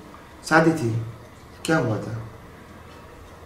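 A middle-aged man speaks calmly and close by in short phrases.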